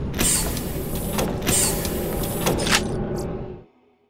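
A metal crate clanks open.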